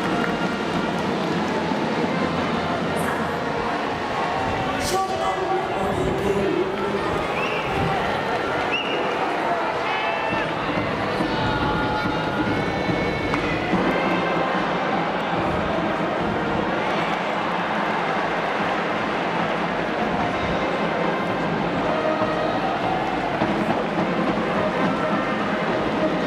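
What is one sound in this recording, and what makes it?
A large crowd cheers and chants loudly in an open stadium.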